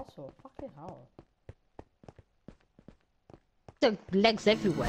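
Footsteps tap on hard stone at an even pace.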